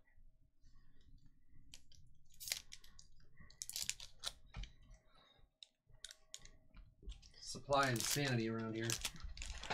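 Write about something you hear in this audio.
Hands tear open a foil wrapper with a crinkling rustle.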